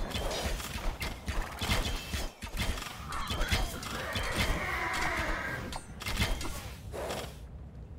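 Swords clang and clash in a busy battle.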